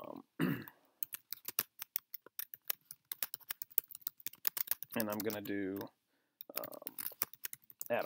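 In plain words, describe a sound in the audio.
Keys click quickly on a computer keyboard.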